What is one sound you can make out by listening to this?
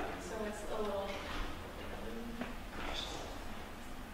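A young man speaks calmly through a microphone in a large room.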